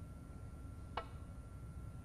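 A cue taps a snooker ball with a sharp click.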